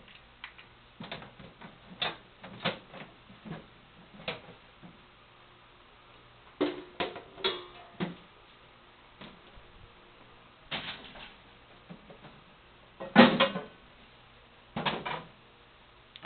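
Metal parts clank and knock as a man handles them close by.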